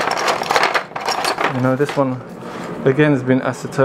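Small hard objects clink and rattle in a box.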